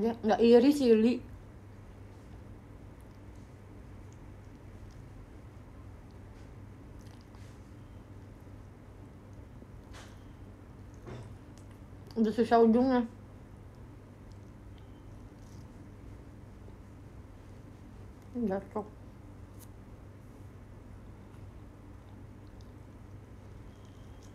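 A young woman chews and bites crisp food close by.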